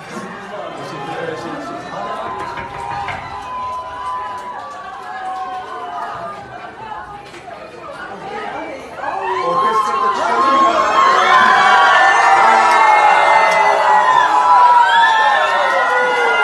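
A large crowd chants and sings loudly, growing louder as a door opens.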